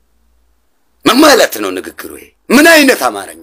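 A young man speaks emphatically, close to a microphone.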